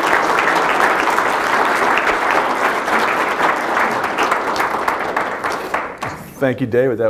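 An audience applauds in an echoing hall.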